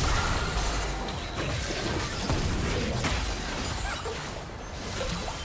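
Magic spells whoosh and crackle amid a fight.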